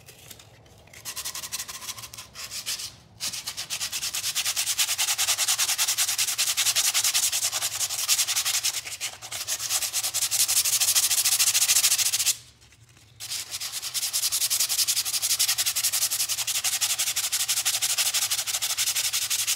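Sandpaper rubs quickly back and forth over wood.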